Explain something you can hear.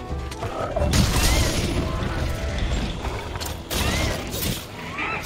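A huge beast stomps and thrashes heavily.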